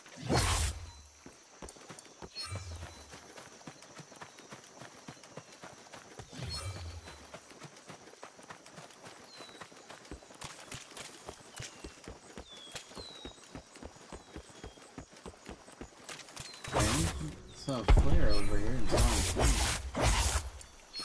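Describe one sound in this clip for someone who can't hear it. Footsteps patter quickly through grass.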